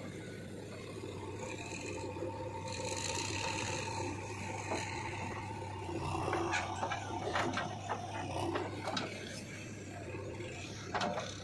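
A digger bucket scrapes through dirt.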